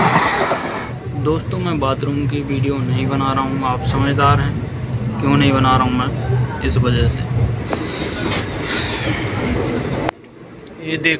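A young man speaks close to the microphone with animation.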